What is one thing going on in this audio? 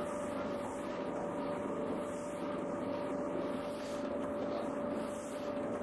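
A large machine hums steadily.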